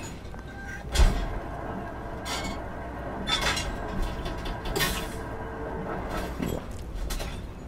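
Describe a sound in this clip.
A metal lever clanks and clicks on a dispensing machine.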